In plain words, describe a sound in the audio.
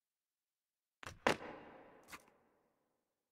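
A shotgun's pump action clacks.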